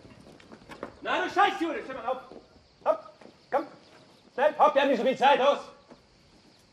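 A man shouts harsh orders.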